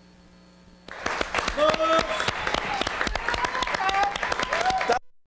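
A man and a woman clap their hands.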